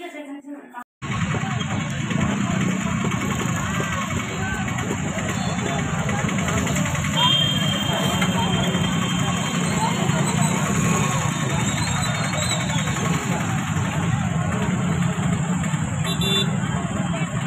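A busy crowd chatters outdoors in a noisy street.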